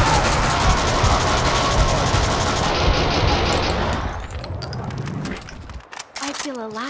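Gunshots blast loudly in quick succession.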